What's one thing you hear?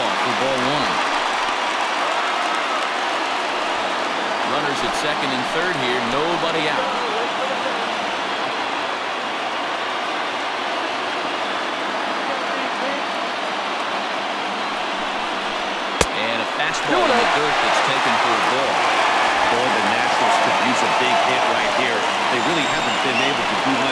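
A large crowd murmurs and cheers steadily in a big open stadium.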